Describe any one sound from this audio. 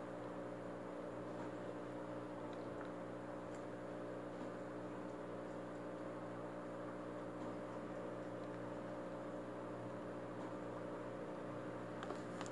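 A hand swishes and stirs water in a small tank.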